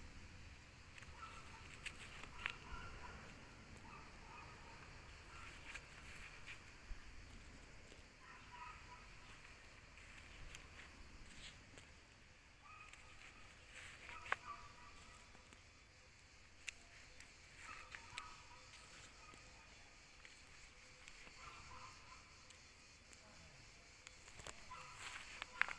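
A gloved hand presses into soft soil with a faint rustle.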